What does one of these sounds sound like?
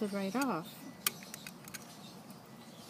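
A metal tool clicks against a metal piece.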